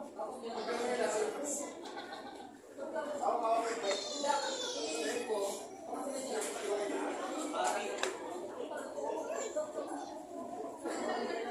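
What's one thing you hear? A middle-aged man talks close by in a lively way.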